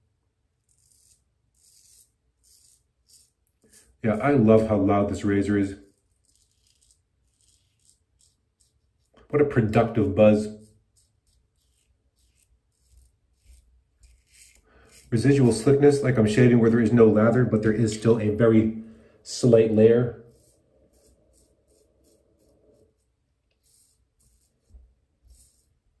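A razor scrapes softly across stubble.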